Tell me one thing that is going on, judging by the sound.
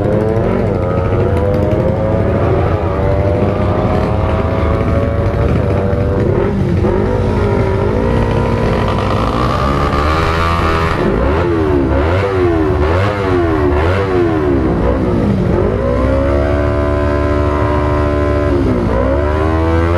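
A motorcycle engine revs loudly, rising and falling in pitch.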